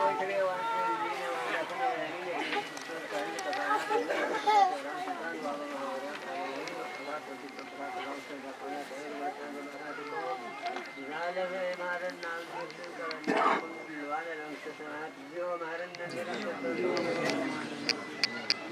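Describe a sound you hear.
A group of men chant a prayer together.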